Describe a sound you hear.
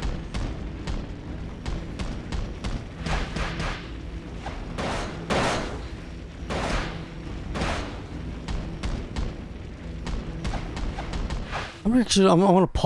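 Robots fire rapid gunshots.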